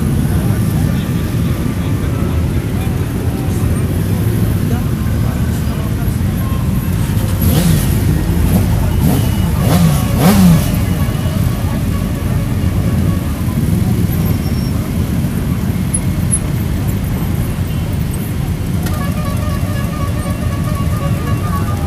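Many motorcycle engines rumble steadily outdoors.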